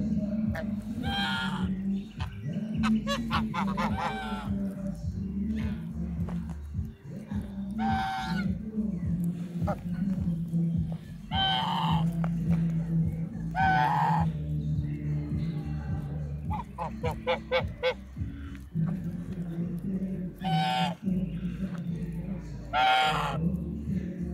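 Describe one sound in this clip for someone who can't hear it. Geese honk loudly and repeatedly close by.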